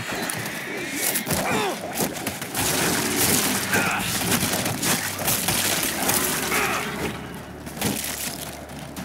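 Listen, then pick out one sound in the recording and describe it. Heavy blows strike bodies with dull thuds.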